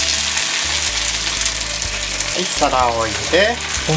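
A plate clinks against a frying pan.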